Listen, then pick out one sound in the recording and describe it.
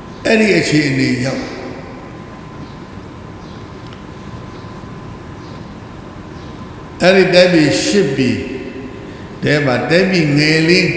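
An elderly man reads aloud in a slow chanting voice through a microphone.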